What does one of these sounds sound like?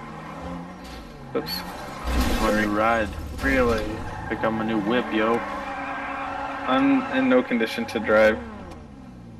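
Car tyres screech as a car skids and spins.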